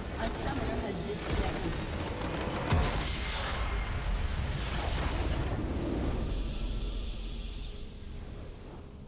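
A structure explodes with a deep, rumbling blast.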